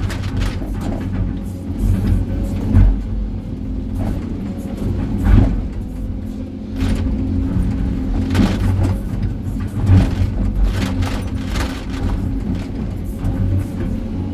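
A diesel engine rumbles steadily close by.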